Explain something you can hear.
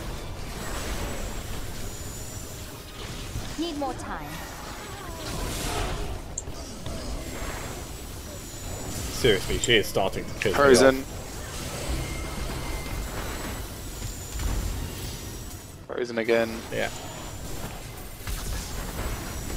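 Magic energy beams crackle and hum with bursts of spell blasts.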